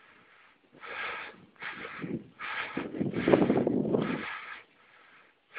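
Wind buffets the microphone in a brief rumbling gust.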